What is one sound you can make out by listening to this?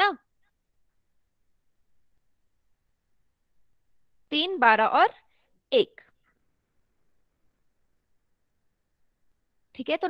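A young woman speaks in short bursts through a headset microphone, with long pauses.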